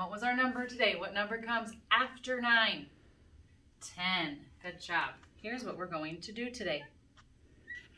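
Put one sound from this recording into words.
A woman speaks clearly and calmly, close by.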